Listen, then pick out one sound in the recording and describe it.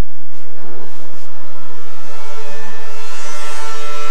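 A snowmobile engine roars as the machine jumps over snow.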